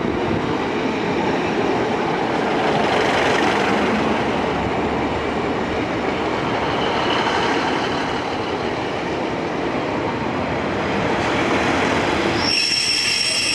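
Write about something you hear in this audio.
A train rumbles and clatters past close by.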